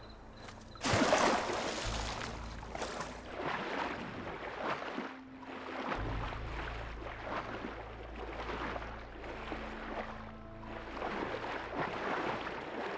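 Water churns and gurgles with steady swimming strokes underwater.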